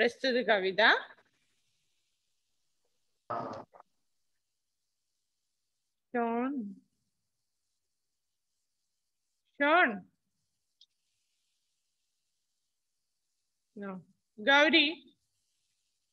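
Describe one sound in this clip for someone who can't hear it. A woman speaks in short phrases into a headset microphone, with pauses between.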